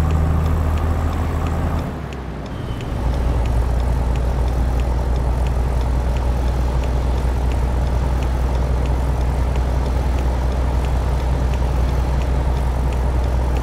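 A truck engine drones steadily, dropping briefly as the gears shift.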